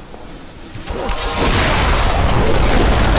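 A spell bursts with a bright crackling flash.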